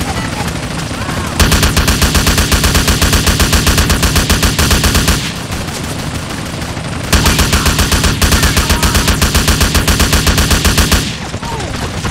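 A helicopter's rotor blades thump rapidly overhead, growing louder and softer in waves.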